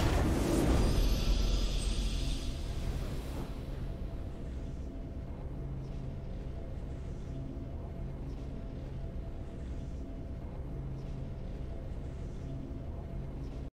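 A triumphant game fanfare swells and then holds a soft, steady chord.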